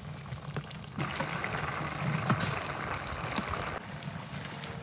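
Stew bubbles and simmers in a pot.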